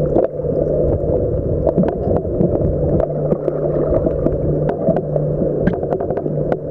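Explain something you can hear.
Water churns and rushes, heard muffled underwater.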